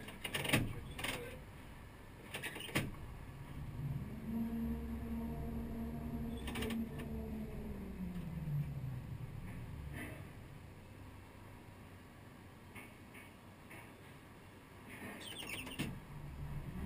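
A control lever clicks sharply a few times.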